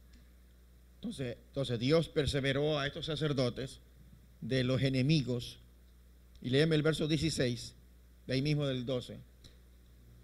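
A man speaks slowly through a microphone, with pauses, in a room with some echo.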